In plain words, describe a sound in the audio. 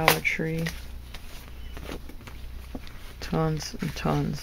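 Paper cards rustle as they are handled.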